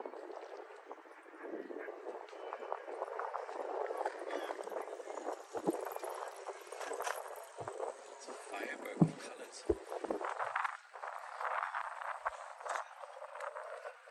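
Water laps gently against a harbour wall.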